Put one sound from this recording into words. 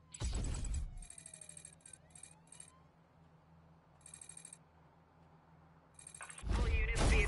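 Short electronic menu beeps sound in quick bursts.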